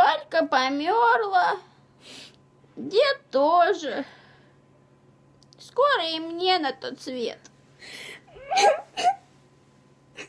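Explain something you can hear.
A teenage girl speaks tearfully close by.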